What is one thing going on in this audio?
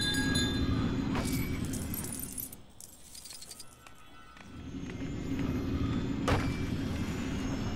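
A magical spell hums and shimmers with a whooshing swirl.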